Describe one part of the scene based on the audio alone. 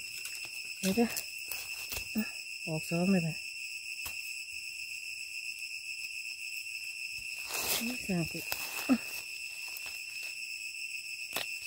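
A knife cuts into soft fruit.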